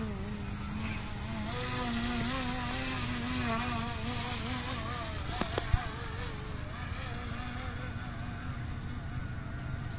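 A radio-controlled model airplane's propeller whines overhead, rising and falling in pitch as the plane stunts.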